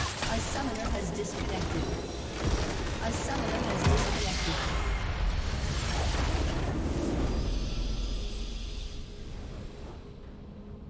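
A huge structure explodes with a loud roaring blast and crackling magic effects.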